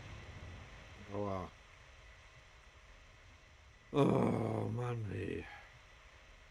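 An older man speaks briefly and calmly into a close microphone.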